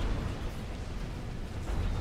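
Laser weapons fire with a buzzing zap.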